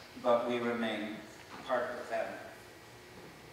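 An elderly man speaks into a microphone in a large hall.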